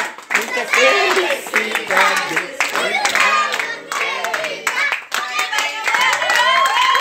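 A crowd of people chatters and laughs nearby.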